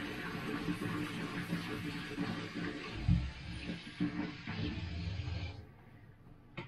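Water runs from a tap into a sink.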